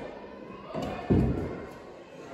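A small hand thumps on a wooden desk.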